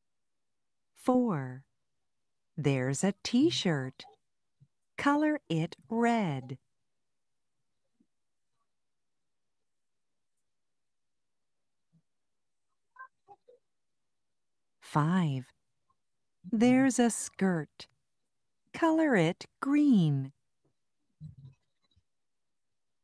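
A woman speaks clearly and slowly through an online call, in short phrases with pauses.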